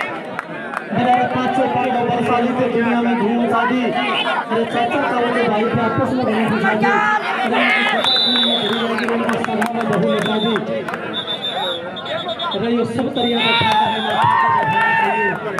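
A young man chants rapidly and repeatedly.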